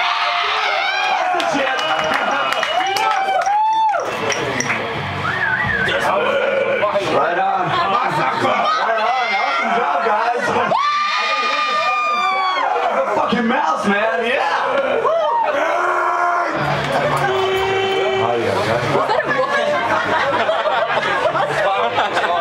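An electric guitar plays distorted, wailing lines.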